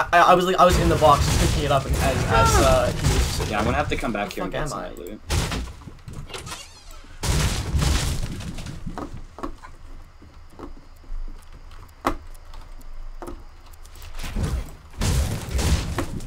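A pickaxe strikes wood and brick with sharp knocks.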